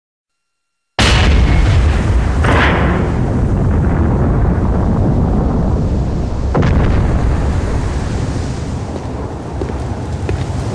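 Heavy stone doors grind open with a deep, loud rumble.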